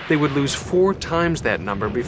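A field gun fires with a loud boom.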